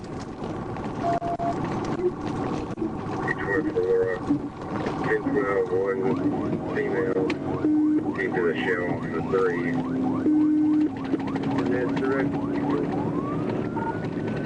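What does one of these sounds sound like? A car engine roars at high speed.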